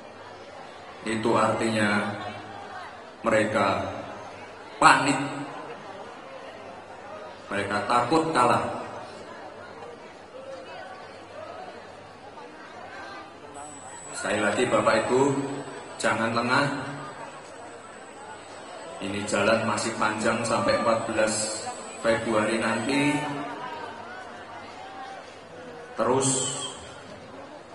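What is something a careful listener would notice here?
A young man speaks into a microphone in short bursts, with pauses, through loudspeakers in a large room.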